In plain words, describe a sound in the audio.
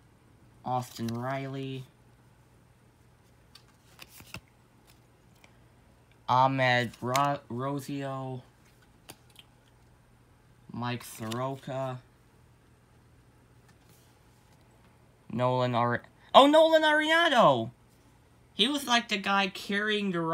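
Trading cards rustle and tap softly as a hand shuffles them.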